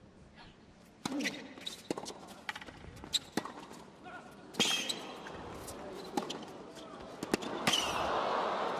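A tennis ball is struck sharply by rackets back and forth.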